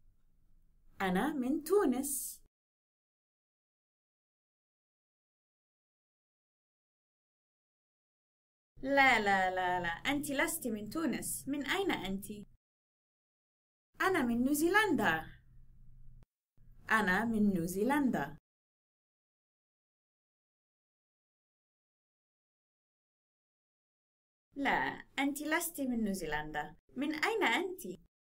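A young woman speaks short phrases clearly and cheerfully, close by.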